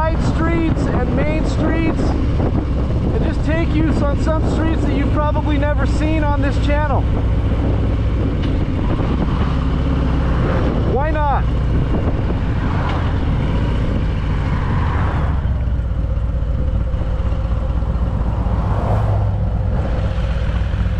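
A motorcycle engine rumbles steadily while riding along a road.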